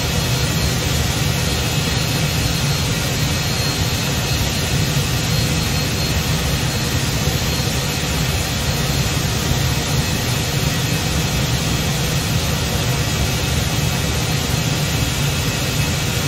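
A jet airliner's engines hum steadily as the airliner taxis past.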